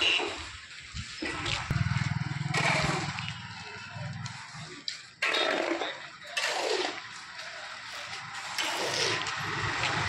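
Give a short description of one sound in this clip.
A shovel scrapes through gravel.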